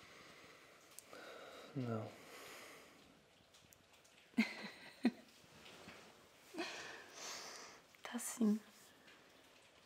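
A young woman giggles softly up close.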